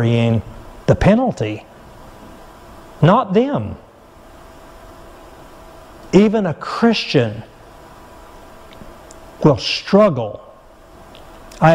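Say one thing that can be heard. A middle-aged man speaks slowly and calmly through a microphone, with pauses between phrases.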